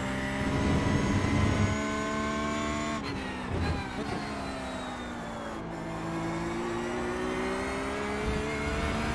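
A racing car engine roars at high revs, then drops in pitch with a gear change and climbs again.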